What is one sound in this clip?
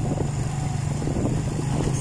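A motorcycle engine hums steadily nearby.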